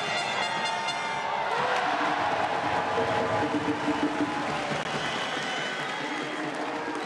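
A large indoor crowd murmurs and cheers, echoing through the arena.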